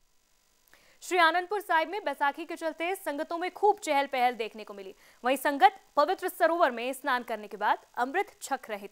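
A young woman speaks clearly and steadily into a microphone, like a news presenter.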